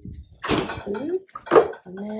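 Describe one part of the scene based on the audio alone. A freezer door is pulled open.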